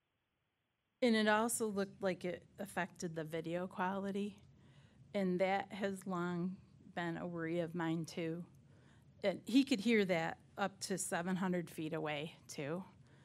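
A middle-aged woman speaks calmly into a microphone.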